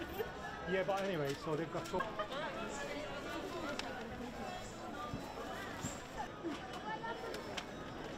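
Men and women chatter nearby in a busy outdoor crowd.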